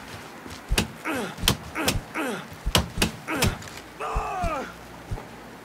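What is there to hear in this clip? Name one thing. A man grunts and cries out in pain.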